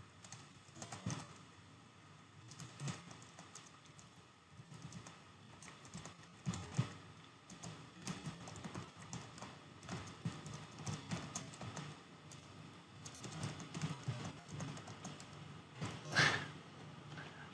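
Keys on a keyboard click softly as someone types.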